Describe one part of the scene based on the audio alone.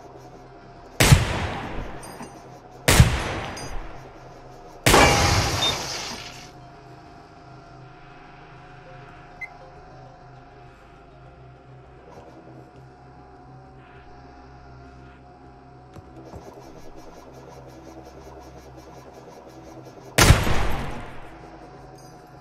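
A gun fires loud single shots, each followed by a short echoing ring.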